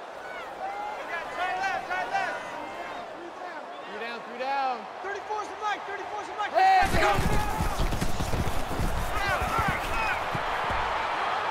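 A stadium crowd roars in the distance.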